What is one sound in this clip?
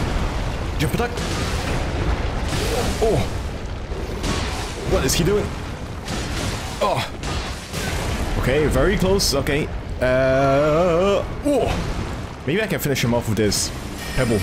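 A huge beast roars and growls.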